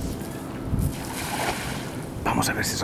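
A cast net splashes onto shallow water.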